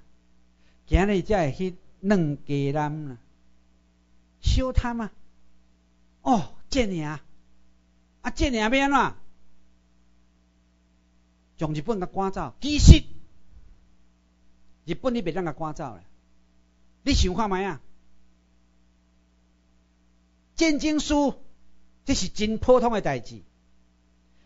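A middle-aged man lectures with animation through a microphone, in short bursts with pauses.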